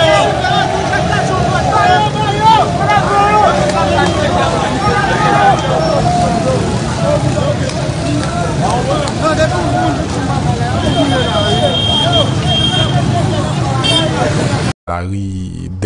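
A crowd shouts and chants outdoors.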